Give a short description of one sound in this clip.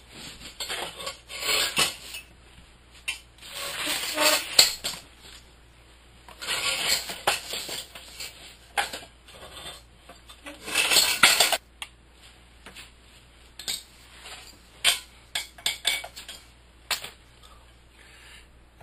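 Metal parts clink and rattle close by.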